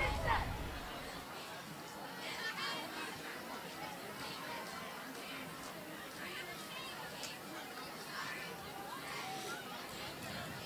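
A distant crowd murmurs faintly.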